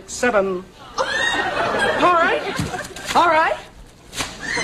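A woman cries out in shock.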